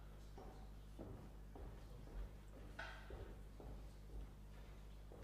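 Footsteps walk across a wooden stage.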